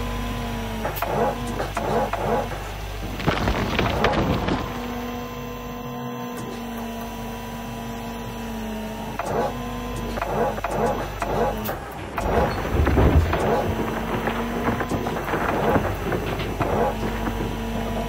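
Dirt and gravel scrape and rattle into an excavator bucket.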